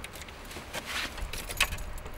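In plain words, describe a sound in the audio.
A key rattles into a car's ignition.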